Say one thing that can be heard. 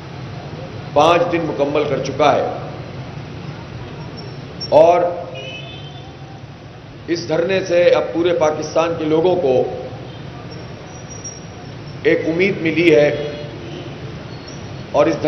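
An elderly man speaks forcefully in bursts through a loudspeaker outdoors, with pauses between phrases.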